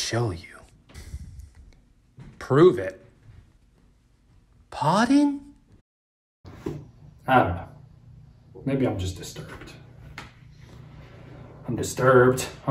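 A young man talks calmly to a listener close by.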